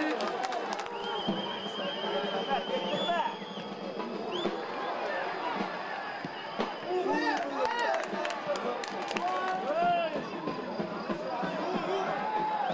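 Men shout and call out across an open football pitch.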